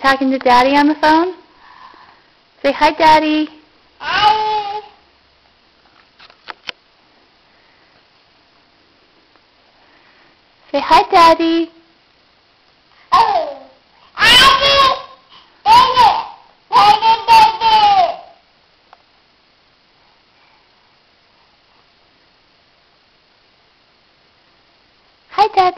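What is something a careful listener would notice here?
A baby squeals and babbles loudly close by, in short bursts.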